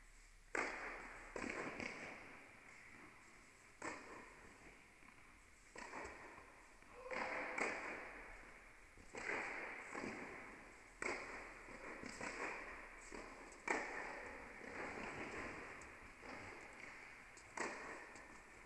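Tennis rackets strike a ball back and forth, echoing in a large hall.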